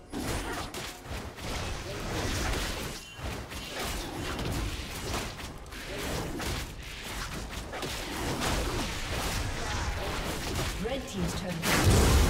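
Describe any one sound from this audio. Magic blasts crackle and whoosh in a fast-paced fight.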